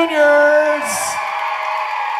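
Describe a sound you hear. A girl shrieks with excitement nearby.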